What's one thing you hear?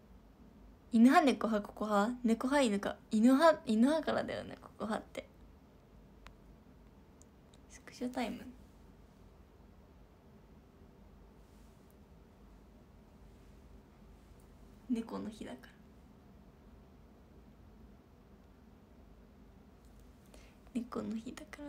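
A young woman speaks brightly and playfully, close to the microphone.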